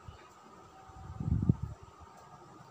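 A metal bowl clunks as it is set down.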